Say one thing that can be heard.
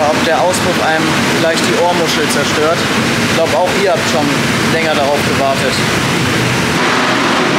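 A young man talks animatedly close to the microphone.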